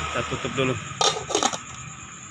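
A metal lid clatters onto a pot.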